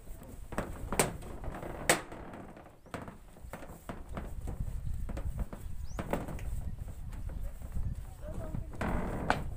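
Hard knocks and taps ring out on a sheet metal roof.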